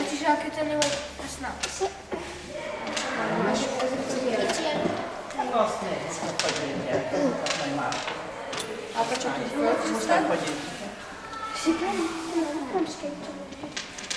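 Small objects click and clatter on a table.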